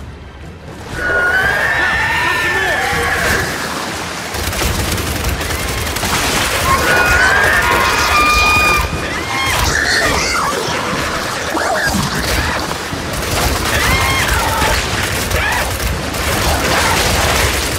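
Creatures shriek and screech.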